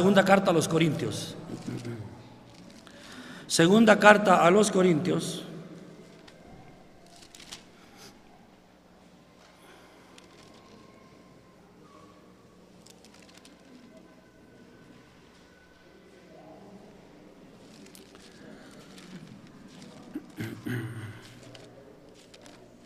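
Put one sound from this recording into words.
An elderly man speaks slowly through a microphone in an echoing hall.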